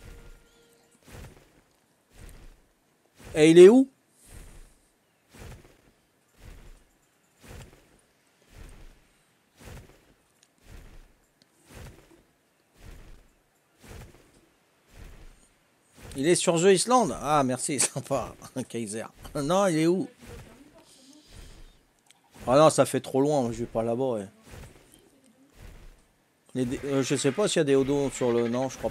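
Large wings beat in a steady rhythm.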